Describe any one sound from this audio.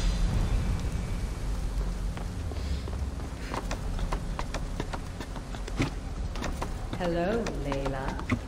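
Hands and feet knock on a wooden ladder during a climb.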